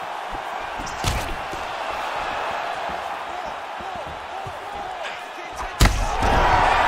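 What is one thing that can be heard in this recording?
Punches land with sharp, heavy thuds.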